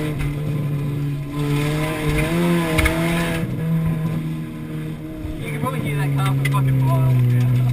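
A car engine hums and changes pitch as the car drives.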